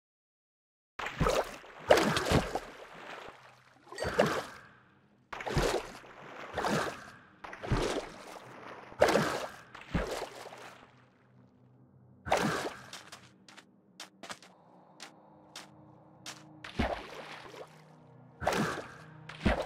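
A trident whooshes as a swimmer is flung out of the water, again and again.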